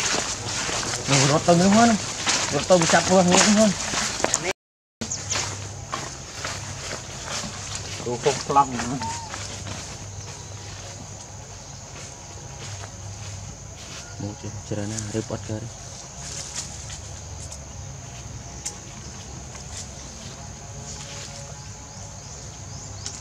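Dry leaves rustle and crackle as monkeys move over them.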